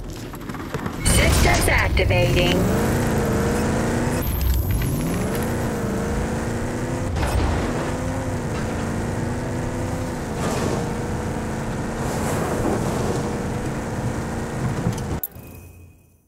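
A vehicle engine roars, revving up and down as it drives.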